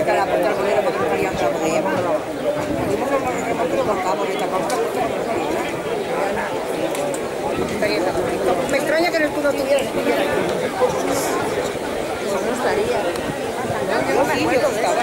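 A crowd of men talks and shouts over each other outdoors.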